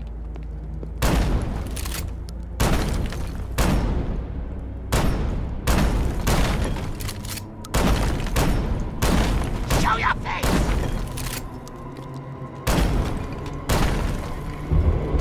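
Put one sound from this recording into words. A gun fires loud shots in bursts.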